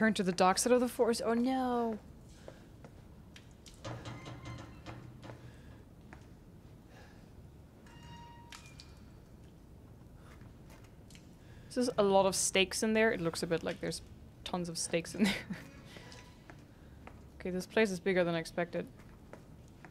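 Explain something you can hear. A young woman talks close to a microphone, pausing between remarks.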